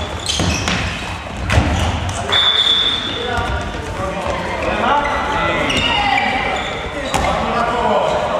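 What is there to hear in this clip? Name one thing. A ball thuds as it bounces on a hard floor.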